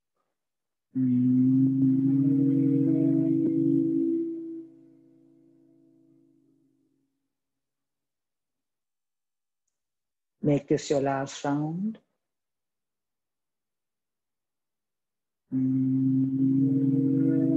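Women chant a long, steady hum together.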